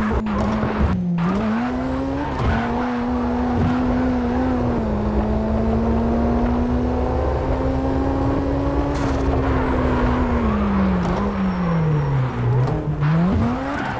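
Tyres screech as a car slides through corners.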